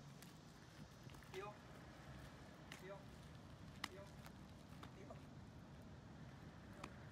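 Footsteps scuff on pavement outdoors.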